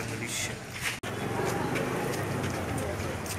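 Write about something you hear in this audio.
A man speaks aloud nearby.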